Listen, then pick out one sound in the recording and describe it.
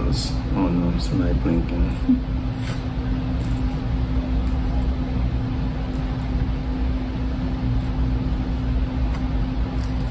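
A knife scrapes spread across bread.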